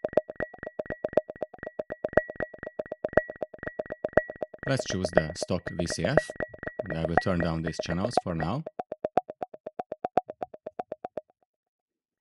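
A synthesizer plays fast, steady electronic beeps in an even rhythm.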